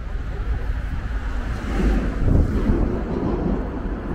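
A man and a woman talk quietly as they pass close by.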